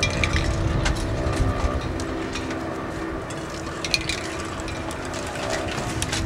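A metal frame clatters against a brick wall.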